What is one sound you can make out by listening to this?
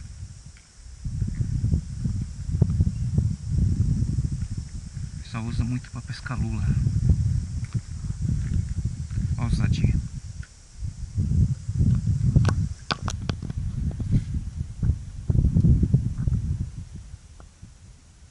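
Wind gusts loudly across the microphone outdoors.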